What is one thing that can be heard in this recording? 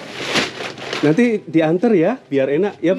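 A young woman speaks loudly and animatedly close by.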